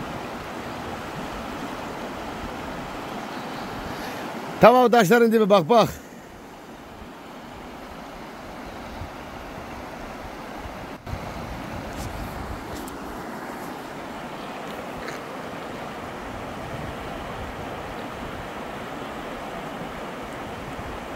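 A shallow river rushes steadily over rocks.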